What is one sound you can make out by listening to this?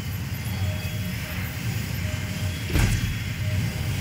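A short electronic click sounds as a menu opens.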